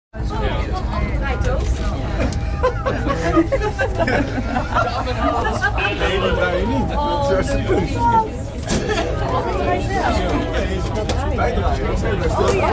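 A cable car cabin hums and rumbles steadily as it moves.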